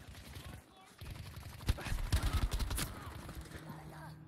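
Rapid gunfire rattles in a burst.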